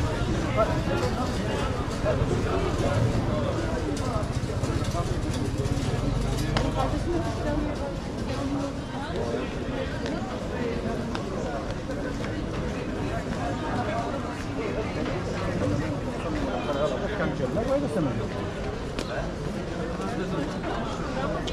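A crowd of people chatters and murmurs outdoors in a busy street.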